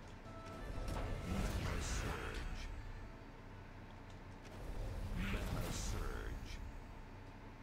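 Game sound effects whoosh and chime as gems burst.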